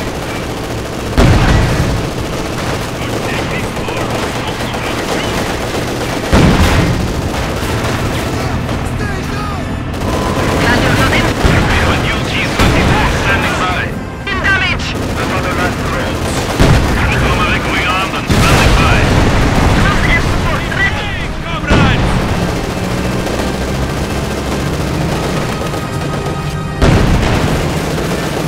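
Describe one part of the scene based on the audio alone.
Tank engines rumble steadily.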